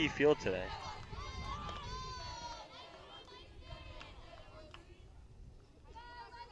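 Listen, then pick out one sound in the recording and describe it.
Young women on a softball field shout and chant in the open air.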